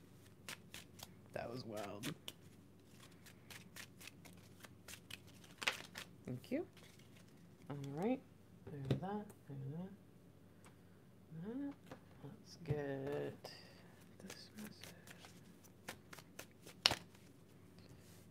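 Playing cards riffle and flick as a deck is shuffled.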